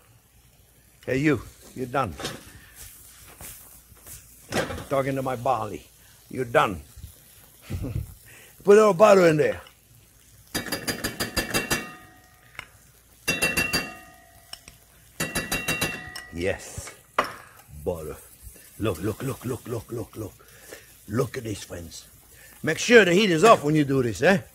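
An older man speaks calmly and clearly into a microphone.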